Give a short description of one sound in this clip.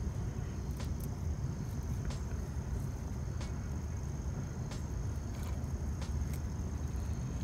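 Fingers fiddle with a fishing lure, with small clicks.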